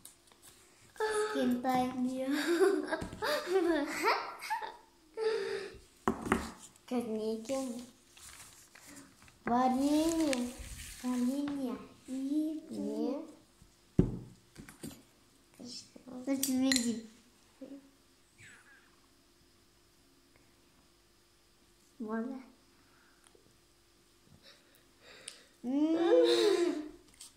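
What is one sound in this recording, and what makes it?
A young girl talks and giggles close by.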